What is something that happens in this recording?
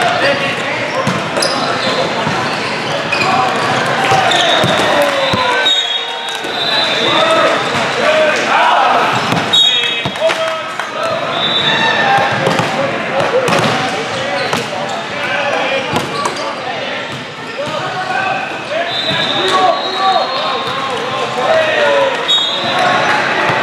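Many voices of players and onlookers shout and chatter in a large echoing hall.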